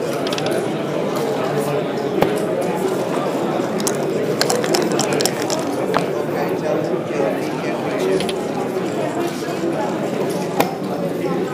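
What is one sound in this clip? Plastic checkers click and slide on a wooden board.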